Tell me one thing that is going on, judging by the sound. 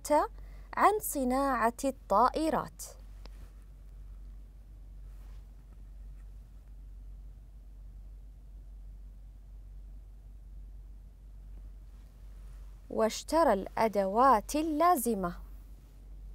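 A woman reads out clearly and slowly, close to a microphone.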